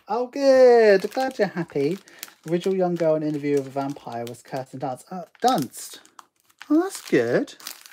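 A plastic sleeve rustles and crackles.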